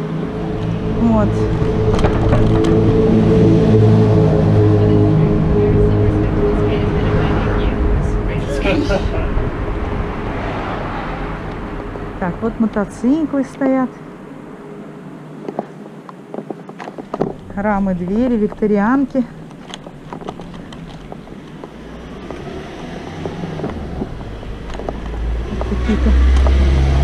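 A motor scooter engine hums steadily, louder at the start and end.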